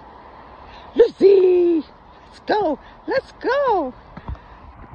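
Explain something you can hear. A dog whines and yelps in short rising and falling cries.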